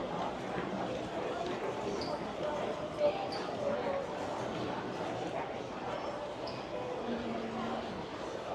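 Footsteps shuffle on a tiled floor.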